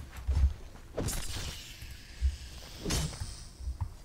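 A blade strikes a snake.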